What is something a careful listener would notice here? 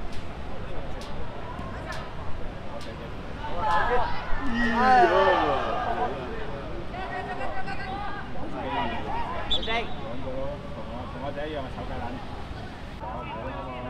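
Children shout and call out excitedly across an open outdoor field.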